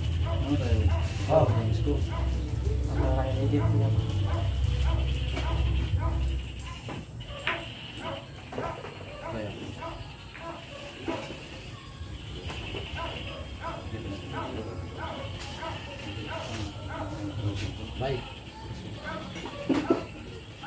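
Several men talk and chat nearby.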